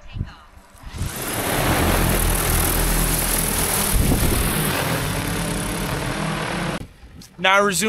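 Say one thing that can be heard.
A drone's rotors whir loudly as it lifts off and hovers.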